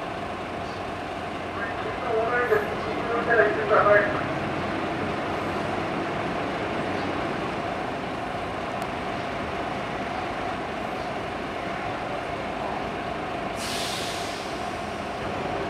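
A diesel locomotive engine idles with a steady low hum.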